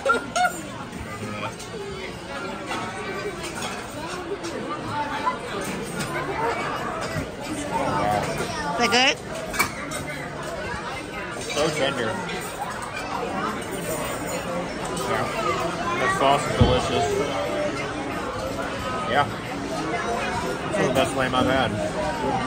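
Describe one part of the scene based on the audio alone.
Many people chatter throughout a busy, echoing dining room.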